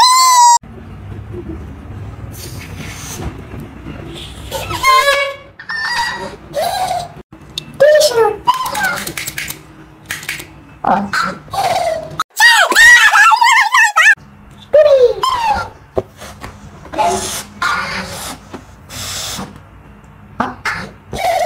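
A young man makes playful whooping vocal sounds close by.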